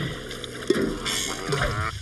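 Water splashes from a fountain.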